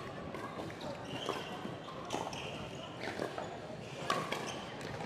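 Paddles strike a plastic ball with sharp pops in a large echoing hall.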